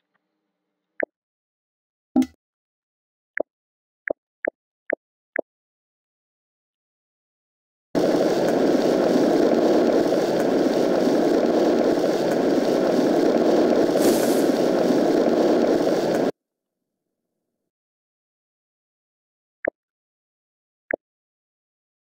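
Short soft tones from a game's menu sound now and then.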